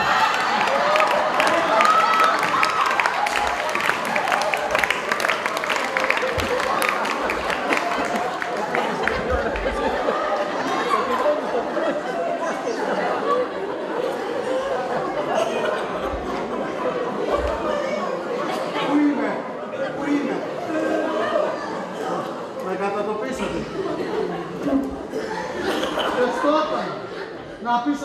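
Adult men and women speak and call out on a stage, heard from a distance in a large room.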